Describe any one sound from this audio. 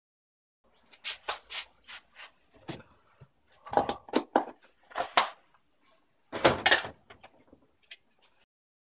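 A phone knocks lightly against a hard block as it is set down.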